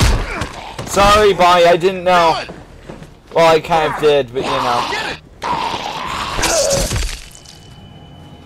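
A man grunts as he struggles.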